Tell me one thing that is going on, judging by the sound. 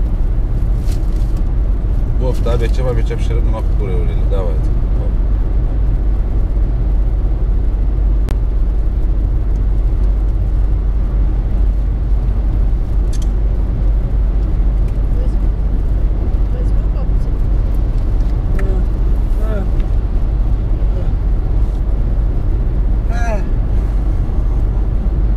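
A car's engine hums and tyres roar steadily on a highway, heard from inside the car.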